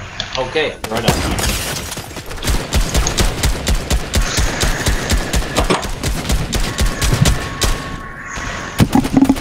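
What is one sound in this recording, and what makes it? Rapid gunshots ring out.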